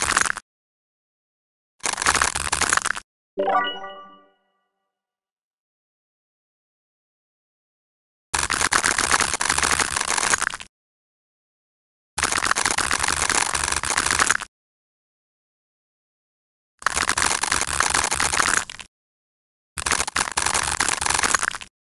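A blade slices through piles of small blocks in bursts of crackling crunches.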